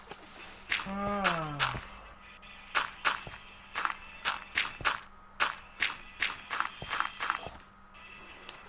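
Dirt blocks crunch in quick, sharp bursts as they are placed.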